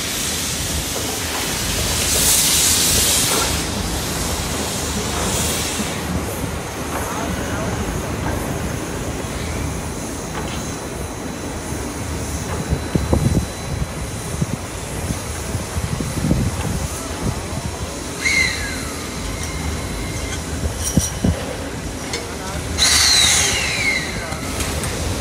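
A heavy locomotive rumbles slowly on a turntable, outdoors.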